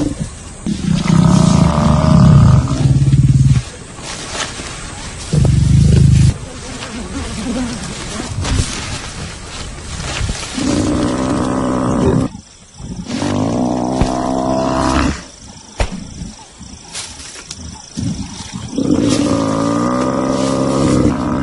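A buffalo bellows loudly in distress, again and again.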